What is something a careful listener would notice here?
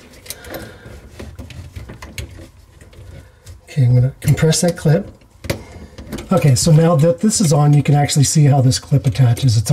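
A metal tool clinks and taps against pipe fittings.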